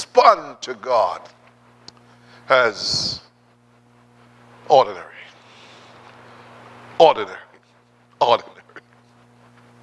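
A man speaks through a microphone in short, emphatic bursts with pauses.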